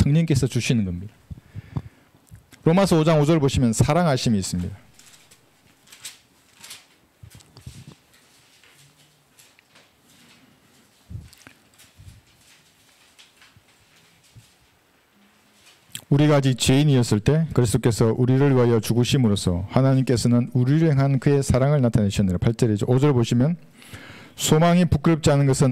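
A middle-aged man speaks calmly into a microphone, pausing now and then.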